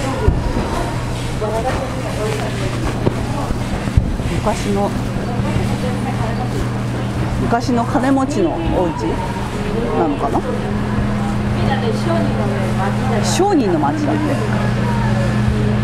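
A crowd of men and women murmurs in a busy street nearby.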